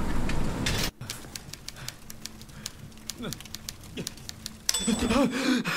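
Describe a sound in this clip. A fire crackles and pops in a hearth.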